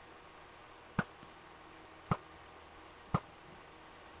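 A bow twangs as arrows are loosed.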